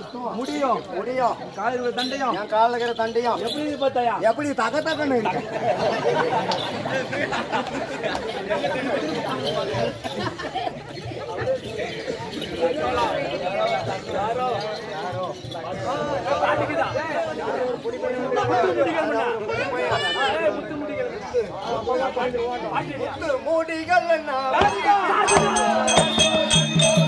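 A man sings loudly in a drawn-out chant, outdoors.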